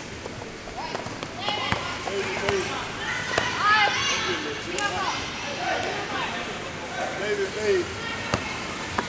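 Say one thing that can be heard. Young boys shout and laugh excitedly in an echoing hall.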